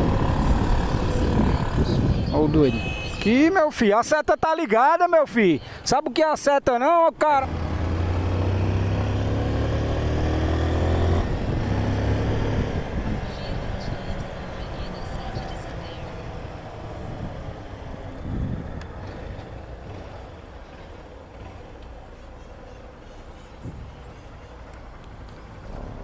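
A motorcycle engine hums and drones while riding.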